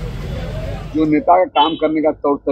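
A man speaks loudly and forcefully into microphones up close.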